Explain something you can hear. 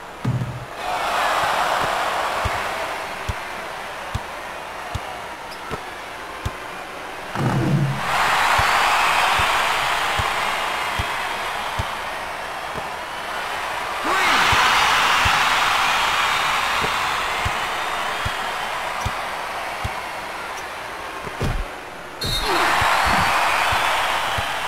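A basketball bounces on a hard court in a steady rhythm.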